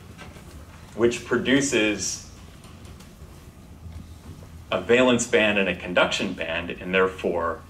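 A young man speaks clearly into a clip-on microphone.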